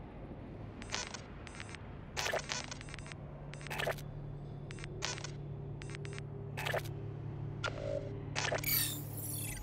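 Short electronic clicks sound as menu options are selected.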